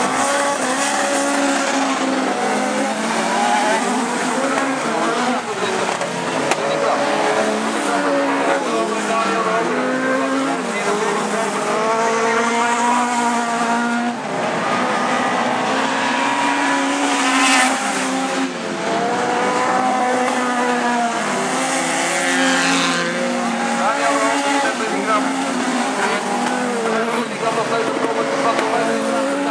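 Many car engines roar and rev hard, rising and falling in pitch.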